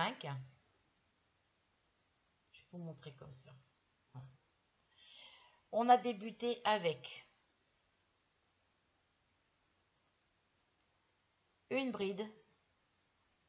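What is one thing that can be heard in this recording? A woman speaks calmly close by, in short bursts with pauses.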